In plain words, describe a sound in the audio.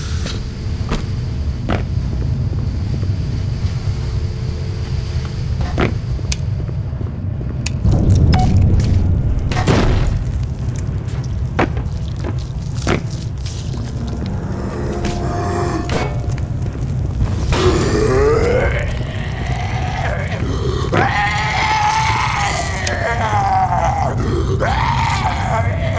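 Footsteps thud on hard floors.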